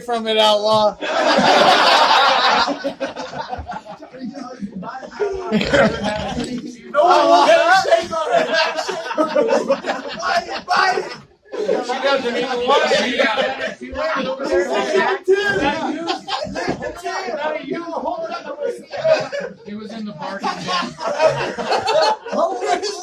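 Several men laugh loudly nearby.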